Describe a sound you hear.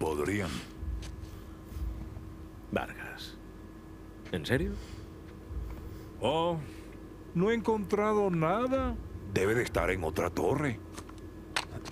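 A middle-aged man speaks with a mocking tone.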